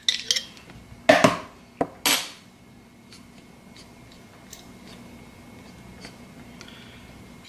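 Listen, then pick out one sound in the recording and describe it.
A shaker bottle taps and rattles over a bowl.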